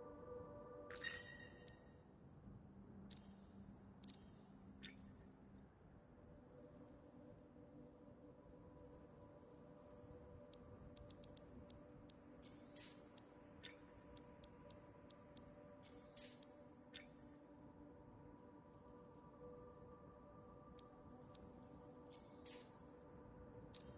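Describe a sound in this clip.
Short electronic clicks and chimes sound as menu items are selected.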